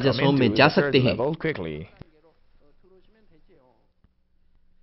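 A middle-aged man speaks forcefully through a microphone.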